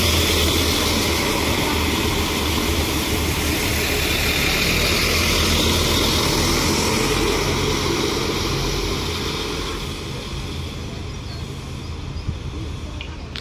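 A passenger train rolls past close by on the rails, then fades as it pulls away.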